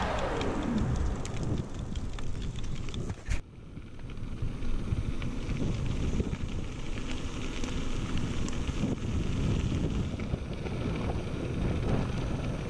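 Wind buffets loudly as a bicycle rides along.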